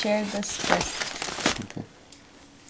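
A paper bag crinkles and rustles close by.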